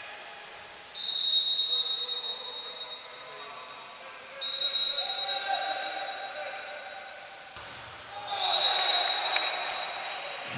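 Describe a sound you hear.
A referee's whistle blows in long shrill blasts.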